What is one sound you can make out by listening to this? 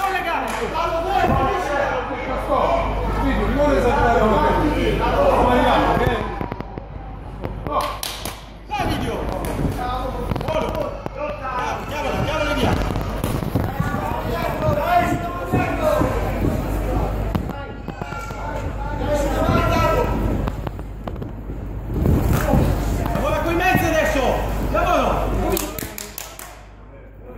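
A crowd of spectators shouts and cheers loudly nearby.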